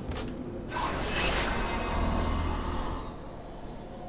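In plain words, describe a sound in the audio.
A magical burst whooshes loudly and then fades.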